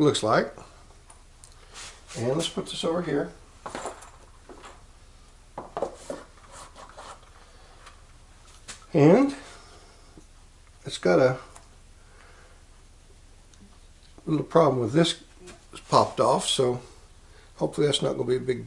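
An older man talks calmly and close to a microphone, in short bursts with pauses.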